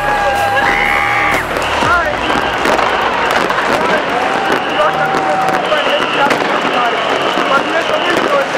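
Fireworks crackle and bang outdoors.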